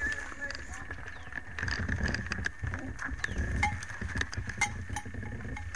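An ox cart's wooden wheels rumble over dirt.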